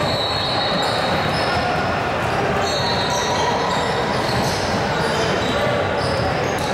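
Young women call out to each other on a court.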